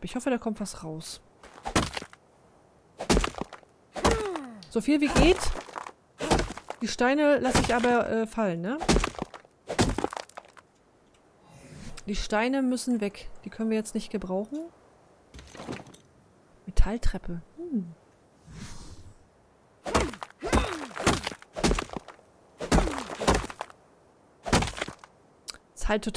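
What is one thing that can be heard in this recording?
A pickaxe strikes rock with sharp, repeated knocks.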